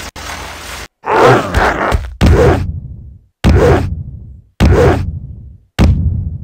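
A heavy block thumps on the ground as it hops along.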